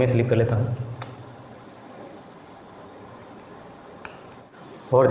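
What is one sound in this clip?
Pliers click softly against wires.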